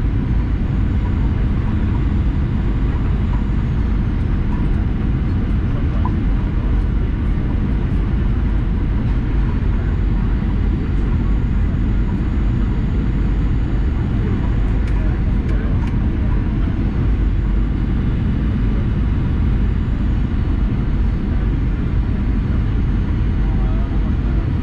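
Air rushes loudly past the aircraft.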